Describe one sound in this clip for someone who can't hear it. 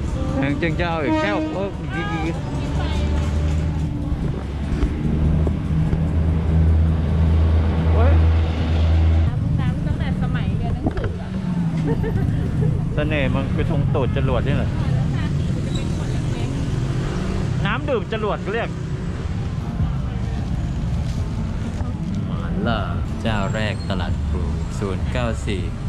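A crowd of people chatters in a busy outdoor street.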